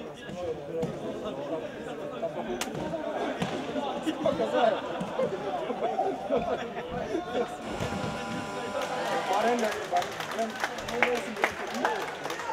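A ball thumps off players' feet.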